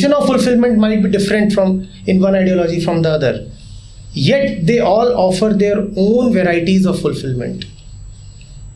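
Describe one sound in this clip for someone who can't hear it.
A man speaks calmly and with animation, close by.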